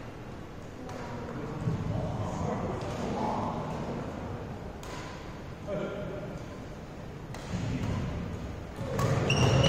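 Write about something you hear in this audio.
Young men talk and call out across the hall.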